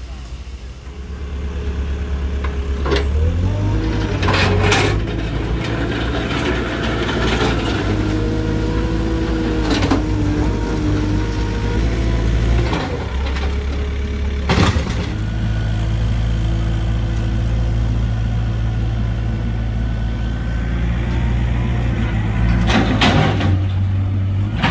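A diesel engine rumbles loudly close by.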